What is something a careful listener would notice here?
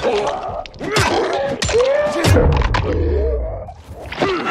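Heavy blows thud wetly into flesh.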